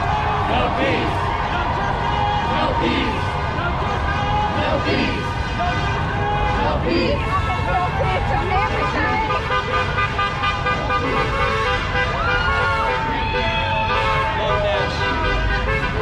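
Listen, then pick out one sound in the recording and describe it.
A crowd of marchers chants and shouts outdoors.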